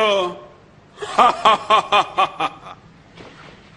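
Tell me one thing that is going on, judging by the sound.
A man laughs heartily in bursts.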